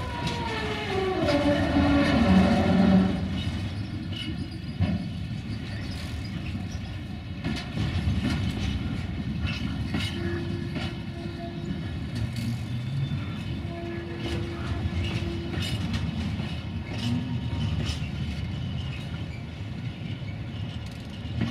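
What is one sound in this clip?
A freight train rumbles steadily along the tracks close by.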